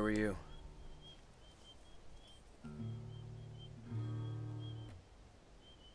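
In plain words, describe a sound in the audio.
An acoustic guitar is strummed in a few ringing chords.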